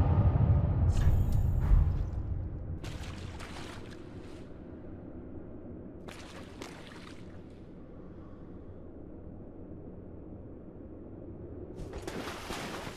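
Armoured footsteps clink and crunch on stony ground in short bursts.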